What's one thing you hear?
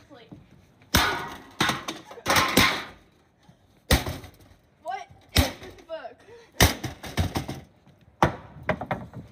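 A sledgehammer smashes into a metal computer case with loud bangs.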